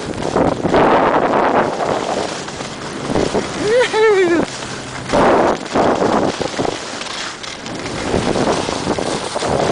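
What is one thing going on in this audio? Skis scrape and hiss over snow in bursts.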